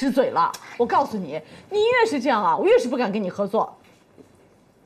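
A young woman speaks firmly and with some annoyance, close by.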